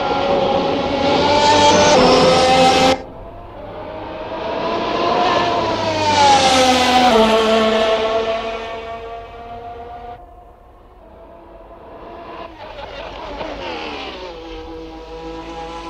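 A racing car engine screams at high revs, rising and falling as the car passes and shifts gear.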